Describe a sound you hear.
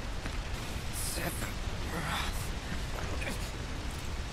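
A young man speaks softly and strained.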